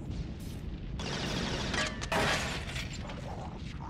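Gunshots crack in a quick burst nearby.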